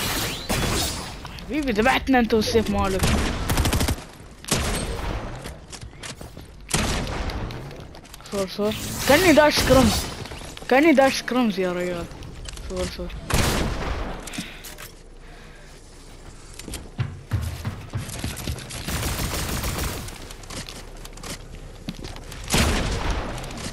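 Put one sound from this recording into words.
Shotgun blasts boom in a video game.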